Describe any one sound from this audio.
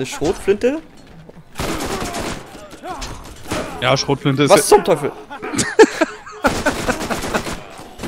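A rifle fires several loud shots in quick bursts.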